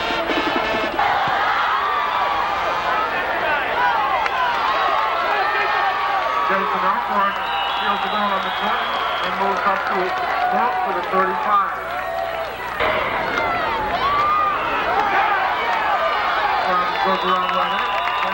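A crowd cheers and shouts in the stands outdoors.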